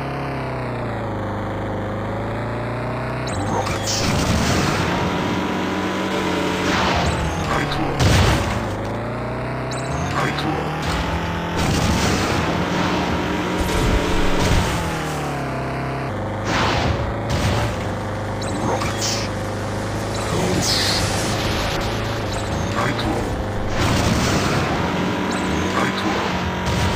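A game vehicle's engine roars and whines, rising and falling in pitch.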